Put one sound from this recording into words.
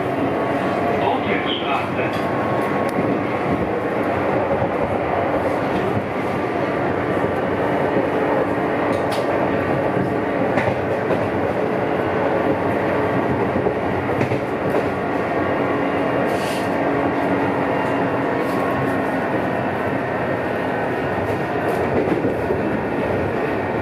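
A train rumbles and rattles steadily along the track.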